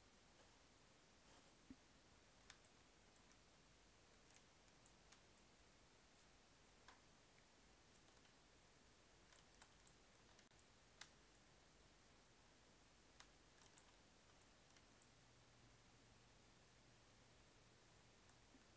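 Water bubbles and pops softly underwater.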